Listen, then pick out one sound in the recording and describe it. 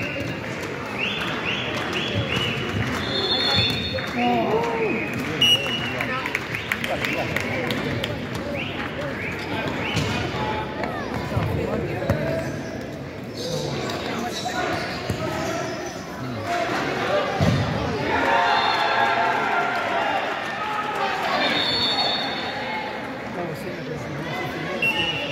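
Children shout and call out across a large echoing hall.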